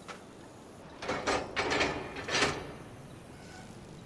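A mine cart rattles and clanks along rails.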